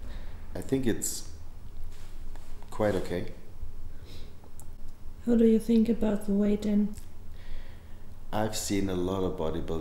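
A young man speaks calmly and casually up close.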